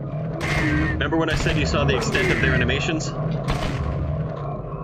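A game pistol fires several shots.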